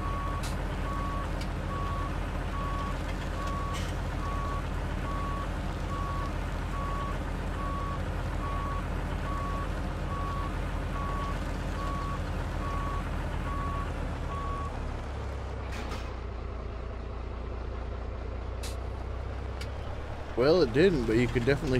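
A heavy truck engine rumbles steadily as the truck drives slowly.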